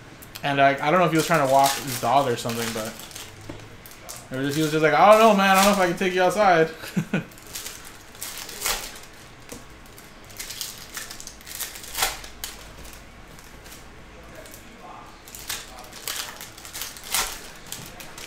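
A foil wrapper crinkles and tears as hands open it.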